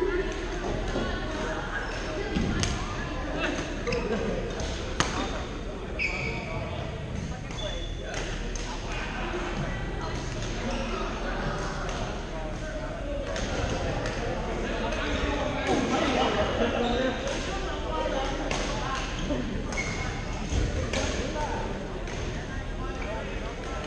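Badminton rackets strike shuttlecocks with sharp pops in a large echoing hall.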